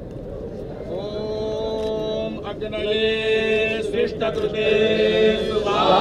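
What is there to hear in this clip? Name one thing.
Men sing a steady chant together.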